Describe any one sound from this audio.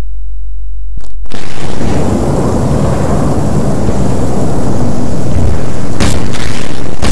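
A loud explosion booms and rumbles on.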